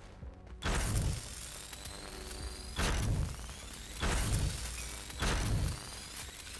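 Heavy thuds of building pieces snapping into place come in short bursts.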